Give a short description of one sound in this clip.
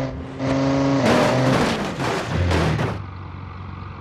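A truck slams into cars with a loud metallic crash.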